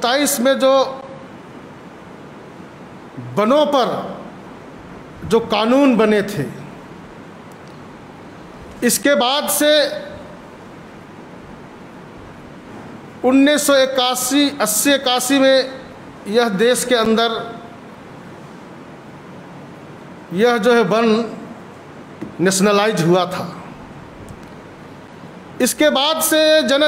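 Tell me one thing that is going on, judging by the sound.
A young man speaks into a microphone in short bursts with pauses between them.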